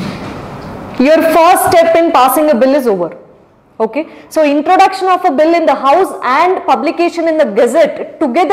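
A young woman speaks clearly into a microphone, explaining with animation.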